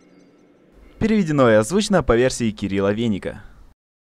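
A young man speaks loudly and with animation, close by.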